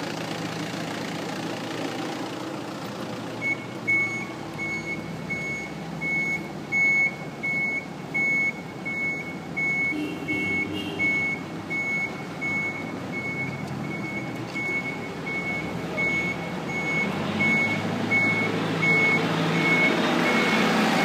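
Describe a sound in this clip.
Footsteps walk along a paved path outdoors.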